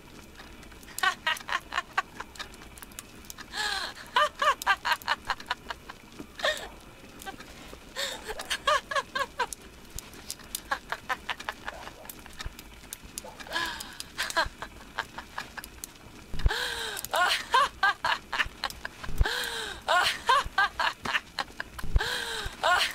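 A scratchy recorded laugh plays from an old gramophone, in repeated bursts.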